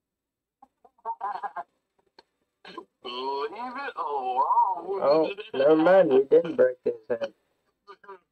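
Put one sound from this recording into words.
A man talks excitedly into a microphone, close by.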